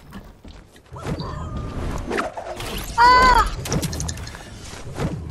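Building pieces clatter and snap into place with sharp knocks.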